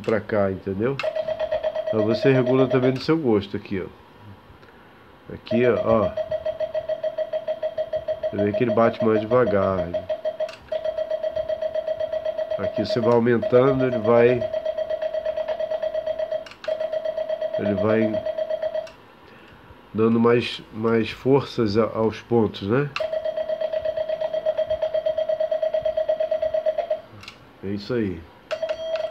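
A Morse key sends a rapid, steady stream of high beeps.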